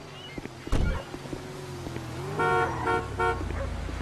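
Footsteps tap on a hard surface.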